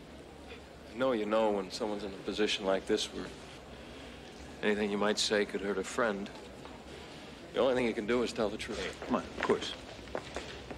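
A young man speaks quietly and earnestly close by.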